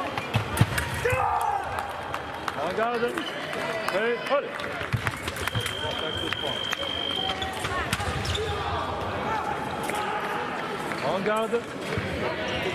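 Male fencers shout loudly in a large echoing hall.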